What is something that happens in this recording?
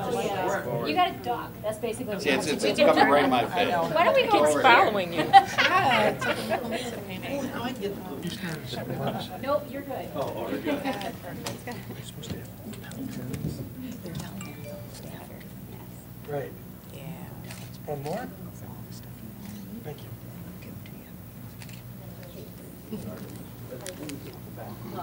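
Several men and women chat quietly in the room.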